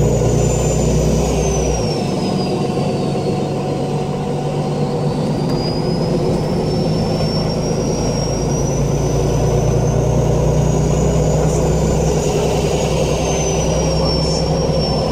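A vehicle rumbles steadily from the inside as it rolls along.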